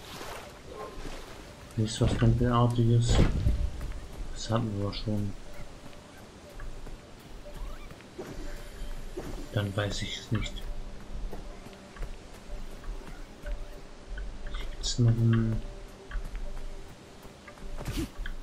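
Light footsteps patter quickly over grass and stone.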